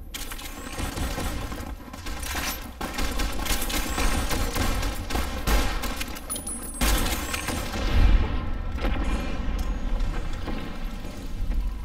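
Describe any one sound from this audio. Laser beams zap and sizzle.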